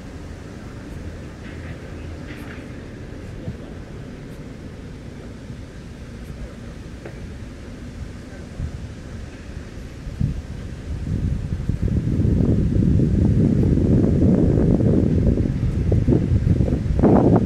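A car drives along a paved road with a low, steady rumble that grows louder toward the end.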